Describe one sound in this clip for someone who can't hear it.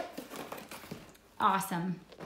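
Cardboard rustles under a child's hands.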